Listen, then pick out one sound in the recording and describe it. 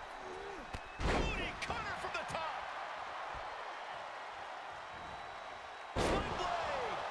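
Heavy thuds of bodies slamming onto a wrestling ring mat ring out.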